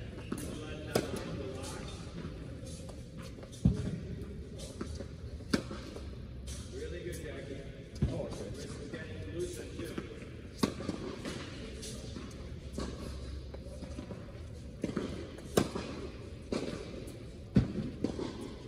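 A tennis ball is struck sharply by rackets, echoing in a large hall.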